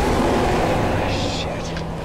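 A man curses sharply.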